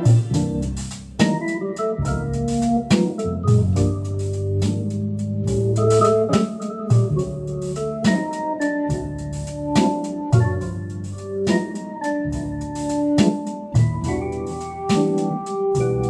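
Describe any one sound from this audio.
An electric organ plays a lively tune with sustained chords and a rhythmic beat.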